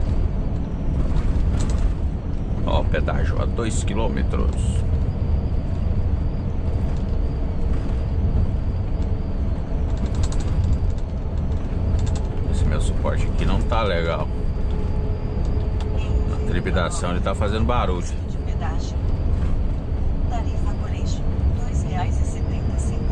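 Tyres roll on the road surface.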